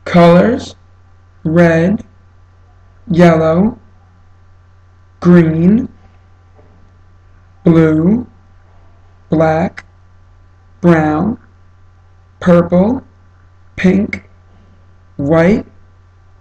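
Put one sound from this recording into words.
A young man says single words one at a time, close up, with short pauses between them.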